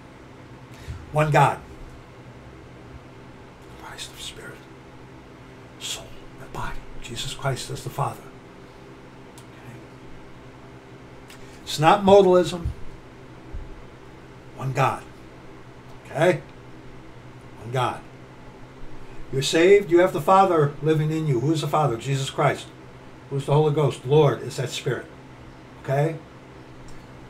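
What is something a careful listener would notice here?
A middle-aged man speaks calmly and with animation close to a microphone, in bursts with pauses.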